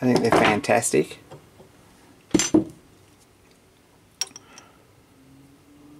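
Metal clinks and knocks against a steel vise.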